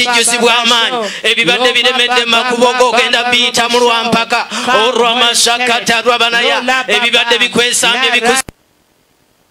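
A man preaches with animation through a microphone and loudspeakers, outdoors.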